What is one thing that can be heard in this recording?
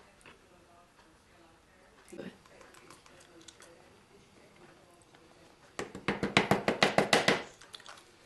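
Flour pours softly onto a metal baking tray.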